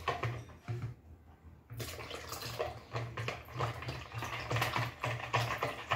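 A wire whisk beats liquid batter in a bowl with quick rhythmic taps.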